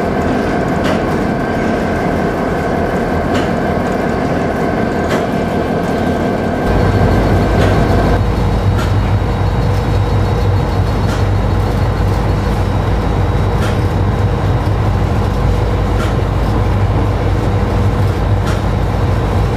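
Train wheels click over rail joints at a regular pace.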